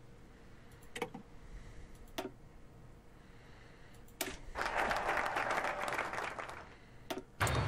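Menu clicks sound sharply every few seconds.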